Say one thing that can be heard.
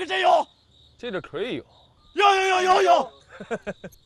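A young man speaks casually.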